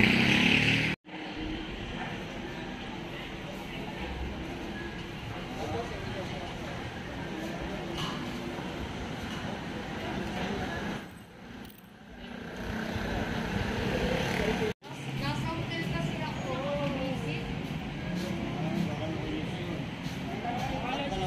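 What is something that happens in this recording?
Men and women chatter nearby outdoors.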